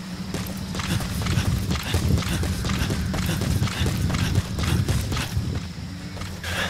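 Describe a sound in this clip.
Boots pound quickly on dry ground as a man runs.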